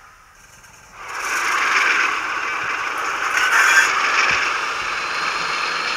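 A model locomotive's small speaker plays a steady hissing engine rumble.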